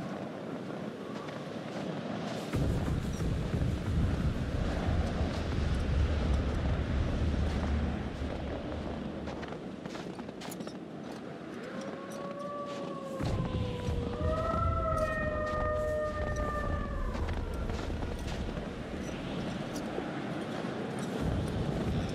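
Wind blows steadily outdoors in a snowstorm.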